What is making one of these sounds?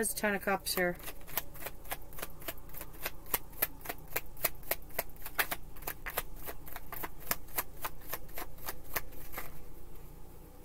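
Cards riffle and snap quickly as a deck is shuffled.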